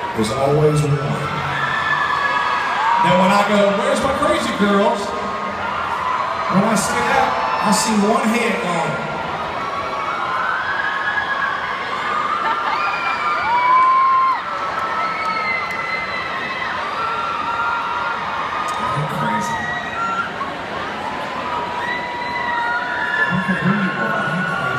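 A man sings into a microphone over loudspeakers in a large echoing hall.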